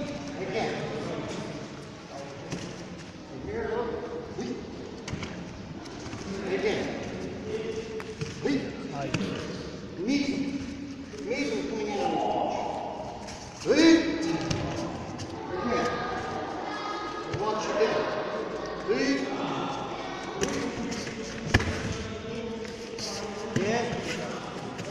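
A man speaks calmly, explaining, in a large echoing hall.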